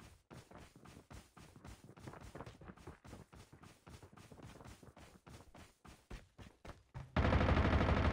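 Footsteps run quickly over grass and wooden floors.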